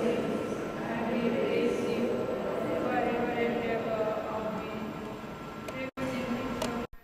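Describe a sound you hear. A man chants steadily through a microphone in a large echoing hall.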